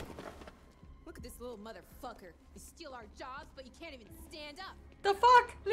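A woman shouts angrily in a game's dialogue.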